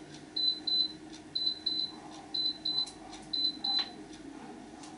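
An electronic appliance beeps in quick pairs of short high tones.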